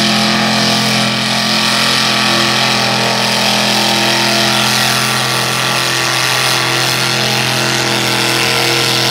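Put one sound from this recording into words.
A truck engine roars loudly and steadily.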